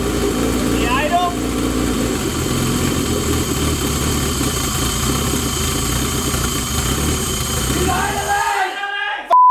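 An engine idles with a steady, rough rumble.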